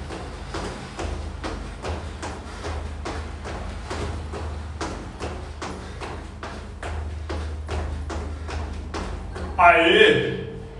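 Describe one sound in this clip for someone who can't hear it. Feet land in quick, steady rhythm on a hard floor.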